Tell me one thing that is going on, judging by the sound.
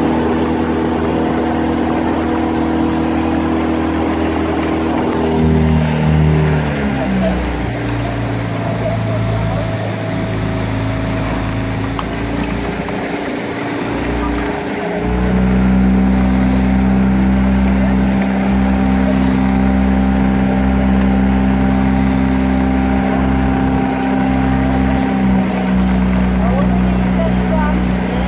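A motorboat engine hums steadily close by, shifting pitch a few times.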